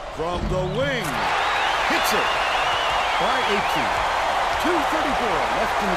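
A large crowd cheers loudly after a basket.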